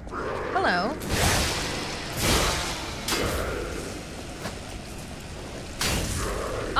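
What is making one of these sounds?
Weapons clash and strike in a fight, with heavy impacts.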